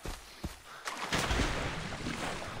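Water splashes loudly as a swimmer plunges in.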